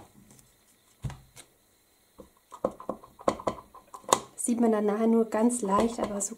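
A plastic stamp block taps and clicks against paper.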